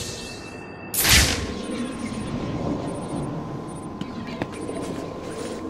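An electronic scanner switches on with a whoosh and then hums softly.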